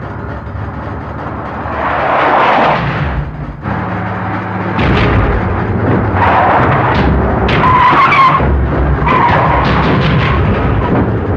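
Several off-road vehicles drive fast with engines roaring.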